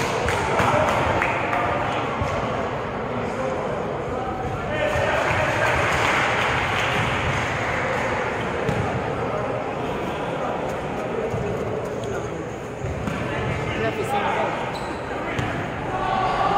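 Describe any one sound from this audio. Many people chatter and call out in a large echoing gym.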